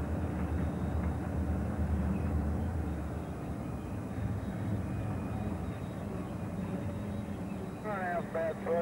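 A freight train rumbles steadily past on the tracks.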